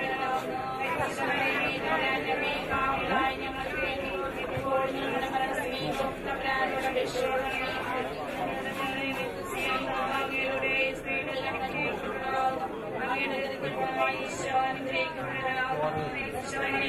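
A crowd of men and women murmurs and talks nearby.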